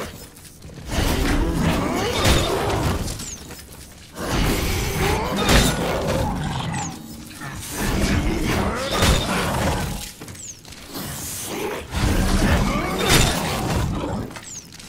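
A creature shrieks and snarls up close.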